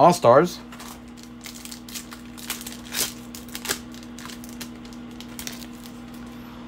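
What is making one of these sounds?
A foil wrapper crinkles and tears as a card pack is opened.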